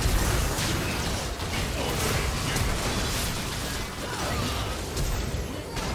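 Game spell effects burst and crackle in a fight.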